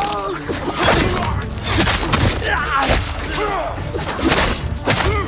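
Steel blades clash and slash in a fierce fight.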